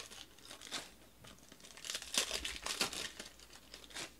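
Foil wrappers crinkle as a pack is torn open.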